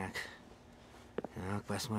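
Footsteps thud softly on a carpeted floor.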